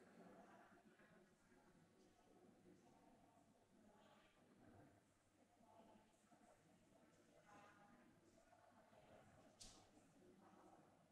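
A young woman speaks calmly into a microphone, heard through loudspeakers.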